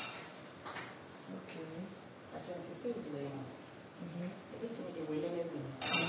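A wooden spoon scrapes and knocks in a pot.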